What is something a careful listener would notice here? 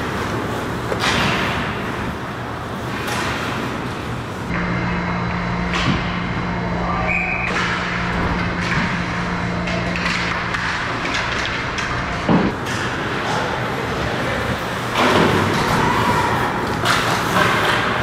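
Hockey sticks clack against a puck and against each other.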